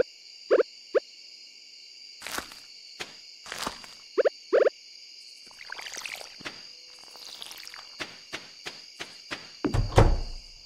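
Footsteps tap on the ground.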